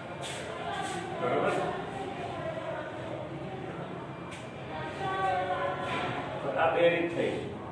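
A middle-aged man speaks calmly, explaining.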